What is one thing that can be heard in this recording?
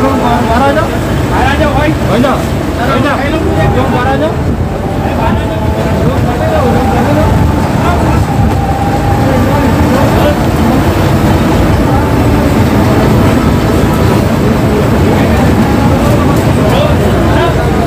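A crowd of men talk and shout excitedly nearby.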